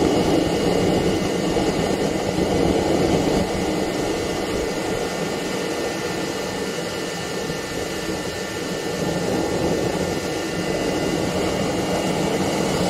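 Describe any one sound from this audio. A small jet engine roars steadily close by, with a whooshing hiss and a high whine.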